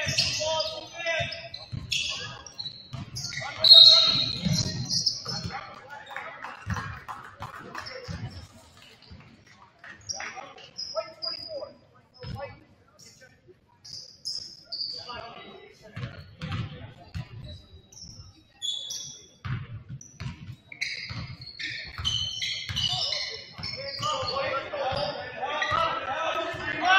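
A crowd in an echoing gym murmurs and cheers.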